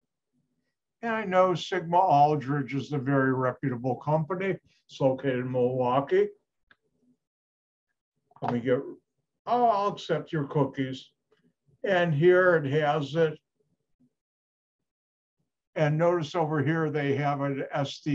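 An older man speaks calmly through an online call microphone, in bursts with pauses.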